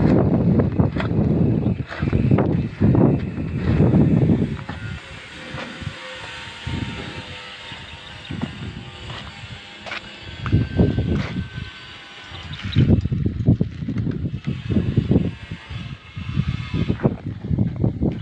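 Wind gusts roughly against the microphone outdoors.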